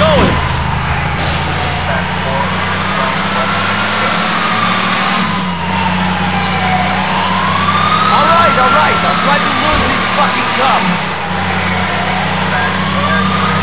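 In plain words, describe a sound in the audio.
A police siren wails up and down close behind.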